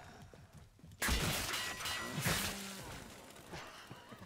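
Gunfire bursts out in loud blasts.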